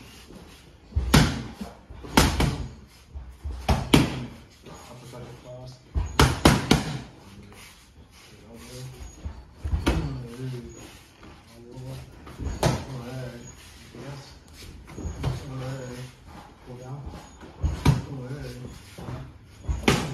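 Boxing gloves thump hard against pads.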